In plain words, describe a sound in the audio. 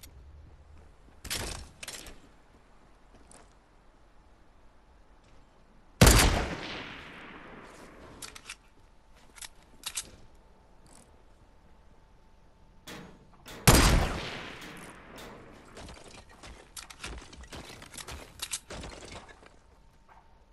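Wooden planks clatter into place.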